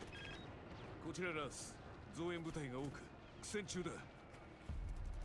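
A young man speaks tensely into a phone, heard close.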